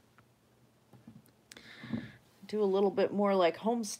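A small ceramic figure is set down on a table with a soft knock.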